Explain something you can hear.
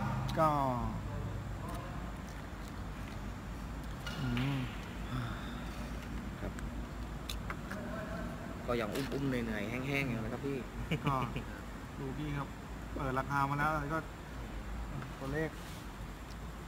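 Men talk nearby in low, casual voices.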